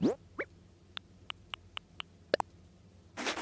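Soft interface clicks tick in a quick run.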